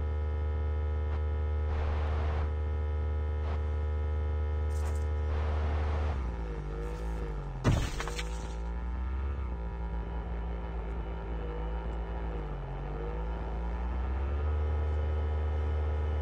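A motorcycle engine hums steadily, its pitch rising and dipping as the rider speeds up and slows down.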